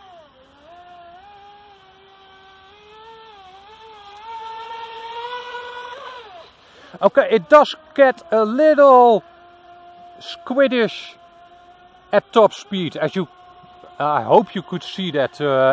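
A small boat motor whines at high pitch, rising and falling as the boat speeds across water.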